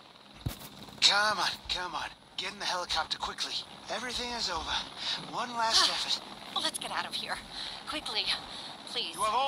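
A man speaks urgently and loudly.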